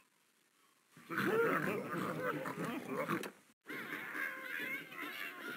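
A short game tune plays.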